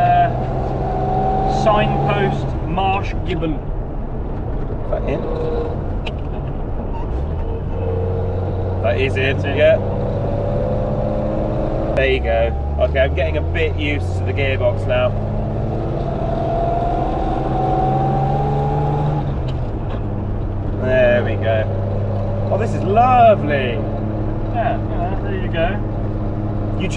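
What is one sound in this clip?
An old car engine hums and revs steadily, rising in pitch as it speeds up.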